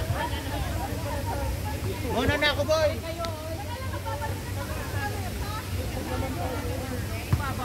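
Children chatter and call out nearby, outdoors.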